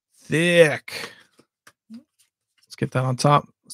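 Playing cards slide and flick against each other.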